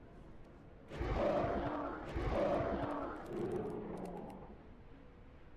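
A large beast growls and roars loudly.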